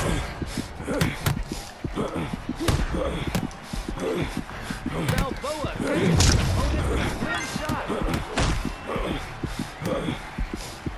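Boxing gloves thud against a body in quick, heavy punches.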